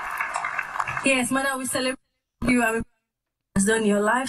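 A woman speaks with emotion into a microphone.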